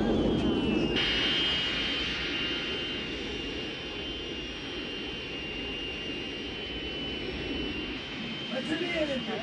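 A jet engine whines steadily as a plane rolls along a runway.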